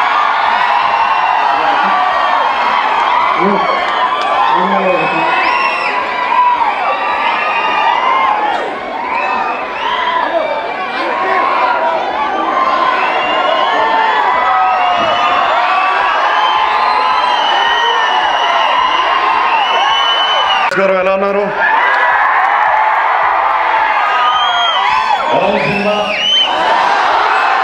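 A large crowd cheers and screams loudly in an echoing hall.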